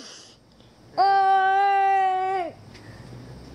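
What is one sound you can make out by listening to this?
A young boy lets out a long, loud sung cry.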